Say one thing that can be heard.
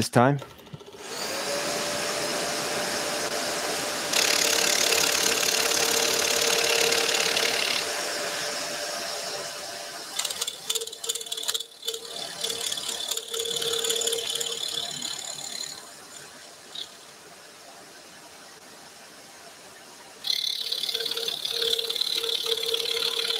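A scroll saw buzzes steadily as its blade cuts through thin wood.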